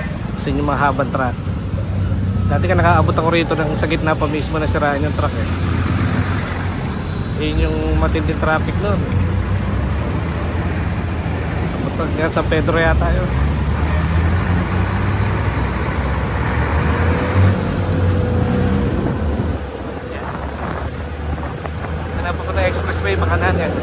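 Traffic rumbles nearby on a busy road.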